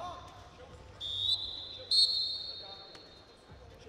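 A referee's whistle blows sharply twice.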